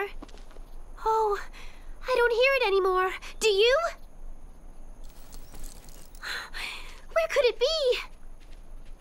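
A young girl speaks with animation, in a high, lively voice.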